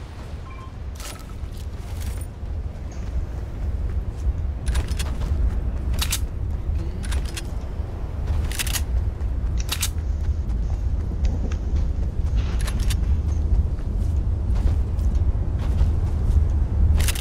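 Quick footsteps run across the ground.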